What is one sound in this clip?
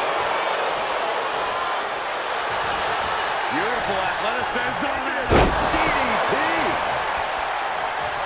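An arena crowd roars and cheers throughout.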